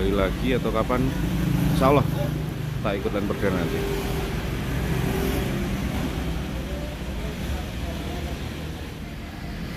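A bus engine idles with a low rumble.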